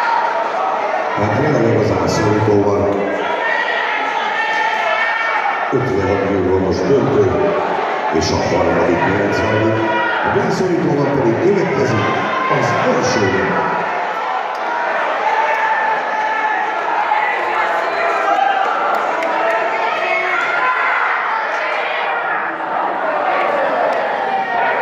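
A crowd chatters and murmurs in a large echoing hall.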